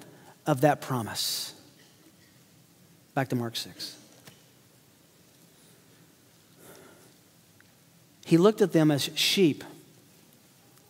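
A middle-aged man speaks with emphasis through a microphone, in short bursts with pauses.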